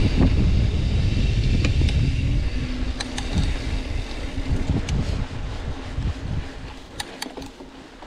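Wind rumbles loudly across a microphone outdoors, then eases.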